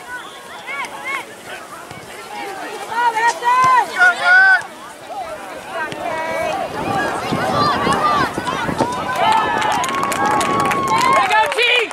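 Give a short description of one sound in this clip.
Young players shout to each other across an open field outdoors.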